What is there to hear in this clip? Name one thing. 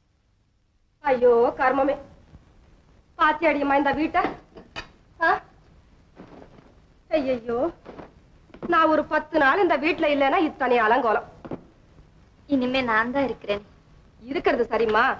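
A woman talks with animation.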